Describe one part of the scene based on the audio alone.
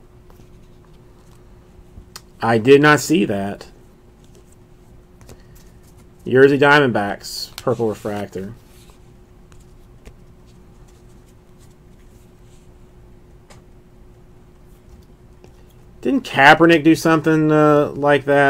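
Trading cards rustle and slide against each other in hands.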